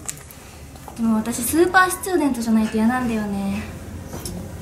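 A young woman speaks nearby in a high, playful voice.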